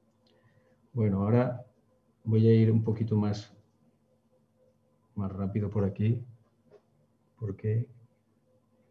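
A man speaks calmly over an online call, in short phrases.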